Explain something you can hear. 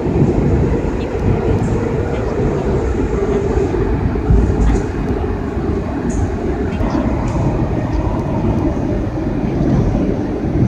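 Steel wheels click and squeal on the rails.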